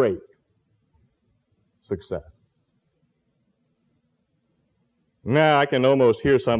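An elderly man speaks calmly and deliberately through a microphone.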